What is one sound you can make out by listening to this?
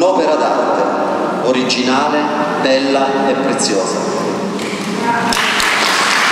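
A man speaks into a microphone in an echoing hall.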